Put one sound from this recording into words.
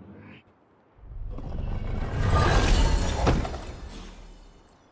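A game chest bursts open with a rushing whoosh.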